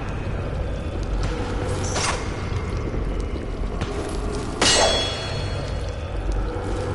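Footsteps scuff on a stone floor in an echoing corridor.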